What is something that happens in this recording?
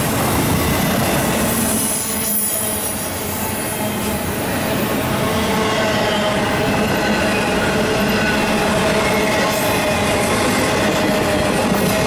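Metal wheels squeal faintly against the rails.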